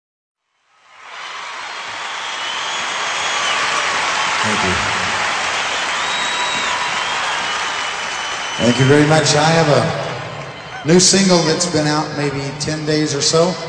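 A large crowd cheers and applauds loudly in a big echoing arena.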